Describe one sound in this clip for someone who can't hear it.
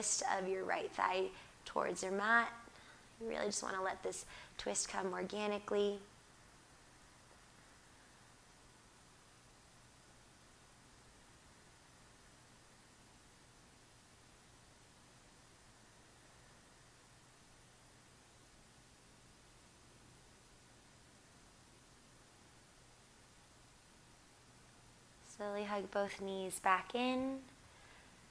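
A woman speaks calmly and softly close to a microphone, with long pauses.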